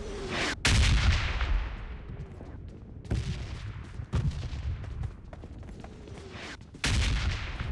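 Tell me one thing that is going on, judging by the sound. Footsteps run across the ground.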